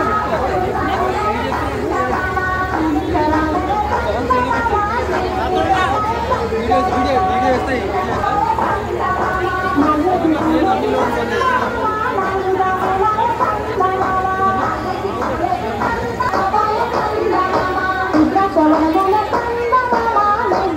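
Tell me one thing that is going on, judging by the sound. A large crowd chatters and murmurs close by.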